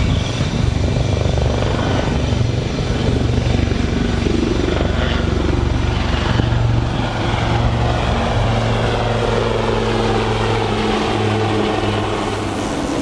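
Helicopters thud overhead with a steady beating drone.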